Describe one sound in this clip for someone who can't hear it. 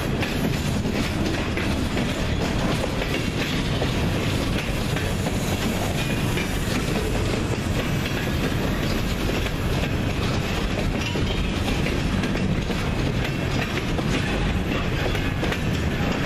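Steel wheels clatter and squeal on the rails.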